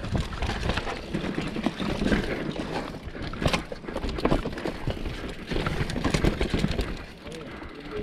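Bicycle tyres rumble and crunch over a dry dirt trail.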